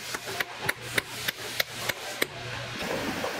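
A hammer taps nails into a boot heel in quick, even blows.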